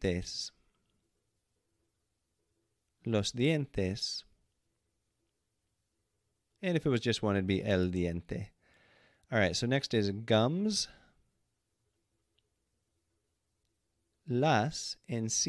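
A man speaks clearly and slowly into a close microphone, pausing between words.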